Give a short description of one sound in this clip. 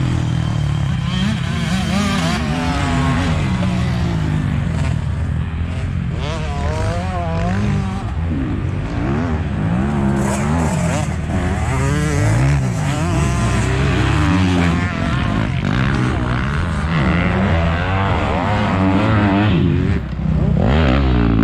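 A dirt bike engine revs up and down loudly close by.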